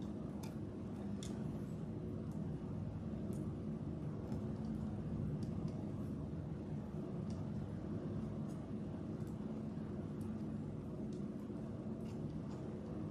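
Plastic beads click softly as they are threaded.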